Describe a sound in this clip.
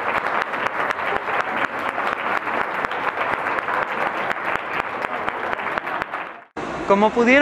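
A large crowd of children claps rapidly.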